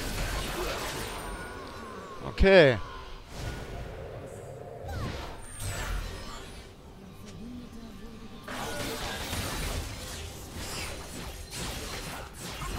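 Fantasy combat effects whoosh, zap and clash in a fast video game fight.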